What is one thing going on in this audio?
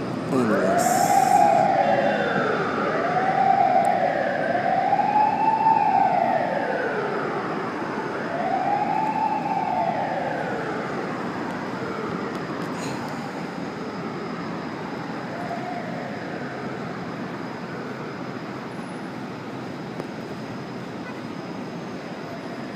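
City traffic hums steadily far below, heard from high up.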